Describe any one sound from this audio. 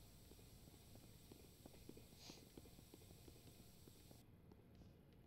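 An aerosol spray can hisses steadily.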